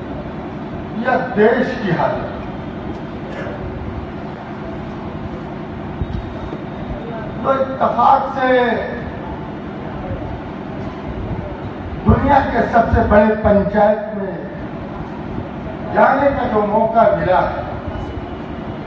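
A middle-aged man speaks in short bursts through a microphone and loudspeakers, with pauses between phrases.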